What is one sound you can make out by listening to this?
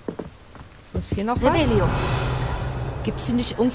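A magic spell swooshes with a rising and falling shimmering tone.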